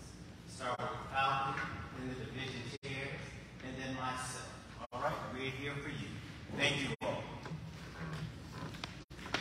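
A man speaks through a loudspeaker in a large echoing hall.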